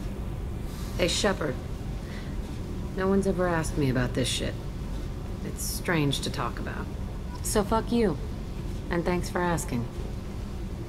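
A young woman speaks curtly and with attitude, close by.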